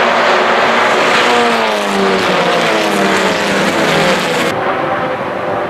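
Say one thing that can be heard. A racing car roars past close by, its engine note falling as it goes.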